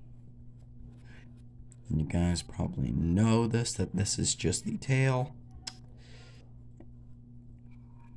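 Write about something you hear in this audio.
A marker scratches lightly on paper.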